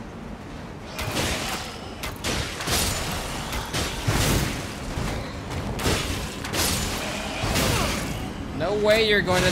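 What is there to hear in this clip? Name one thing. Blades clash and strike in a fight.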